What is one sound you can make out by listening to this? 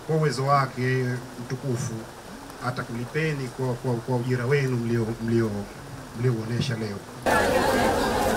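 A man speaks loudly and steadily into a microphone outdoors.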